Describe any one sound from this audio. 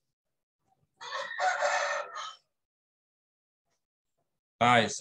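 A young man speaks briefly through a microphone.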